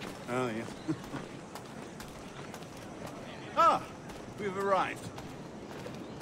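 Footsteps crunch on sandy ground.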